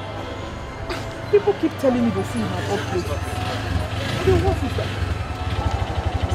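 A motor rickshaw engine putters and idles close by.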